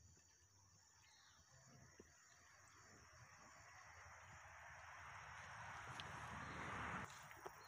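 A fishing pole swishes through leaves as it is pulled from the water.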